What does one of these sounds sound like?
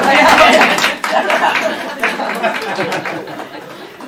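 A group of adults laughs together in a room.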